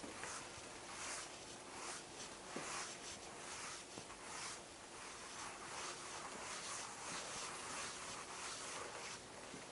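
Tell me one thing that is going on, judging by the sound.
A cloth eraser rubs across a board.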